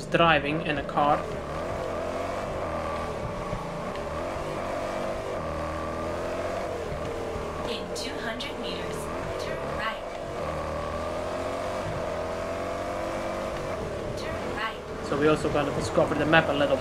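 A sports car engine revs and roars as the car speeds up.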